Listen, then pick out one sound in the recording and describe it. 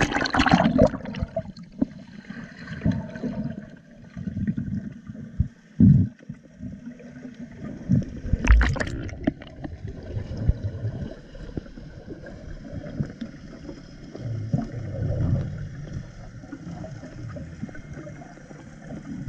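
Water rumbles and gurgles dully underwater.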